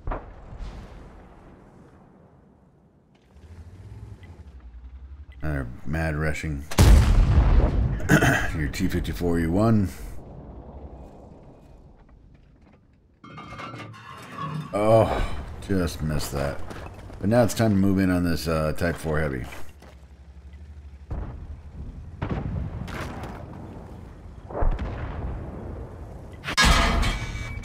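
A tank engine rumbles and clanks.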